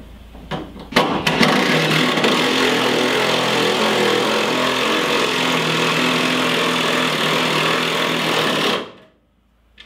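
A cordless drill drives a bolt into metal.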